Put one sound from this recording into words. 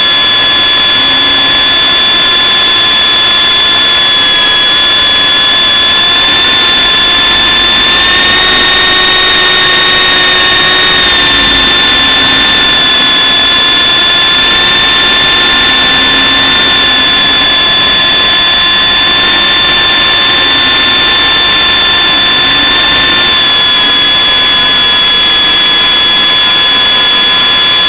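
Wind rushes loudly past a small microphone.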